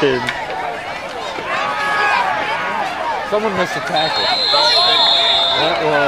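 A crowd cheers and shouts loudly outdoors.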